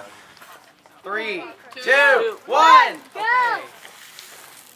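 Young men blow into cupped hands, making loud rising and falling hooting calls.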